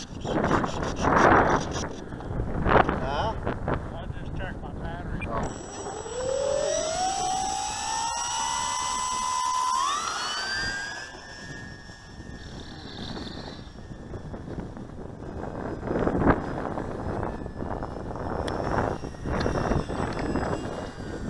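Wind rushes loudly past a small model plane in flight.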